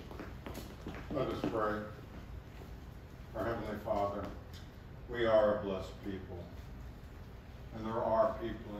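An elderly man speaks with animation in an echoing room.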